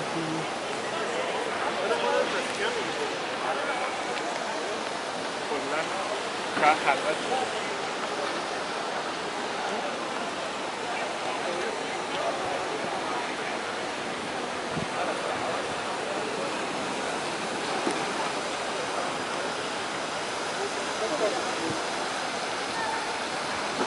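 A crowd murmurs all around outdoors in an open square.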